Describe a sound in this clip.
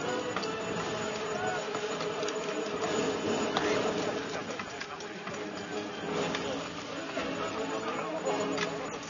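A large outdoor crowd murmurs and cheers.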